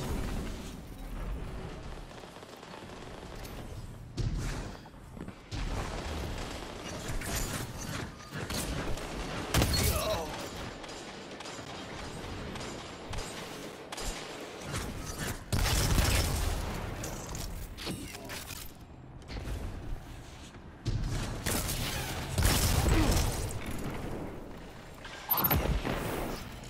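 Gunshots crack and boom in bursts.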